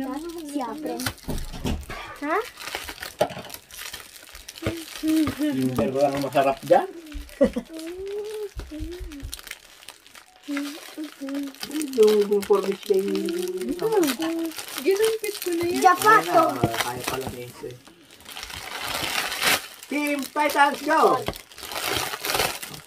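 Children talk excitedly close by.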